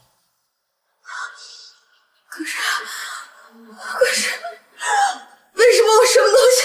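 A young woman speaks with rising distress.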